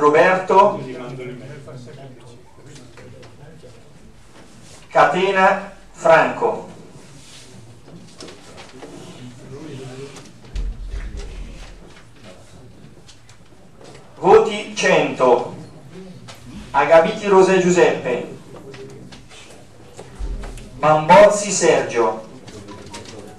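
A man speaks into a microphone in a room with some echo, in short bursts with pauses.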